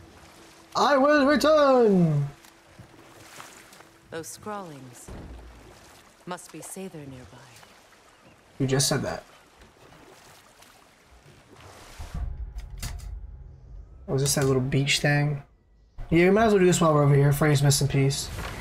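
Wooden paddles splash softly in water.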